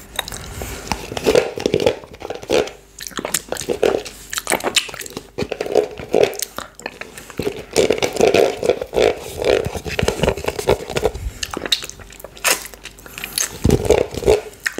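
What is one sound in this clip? A man licks yoghurt off his finger with wet mouth sounds, close to a microphone.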